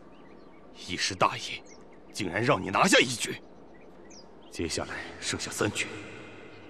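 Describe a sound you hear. A man speaks calmly and low.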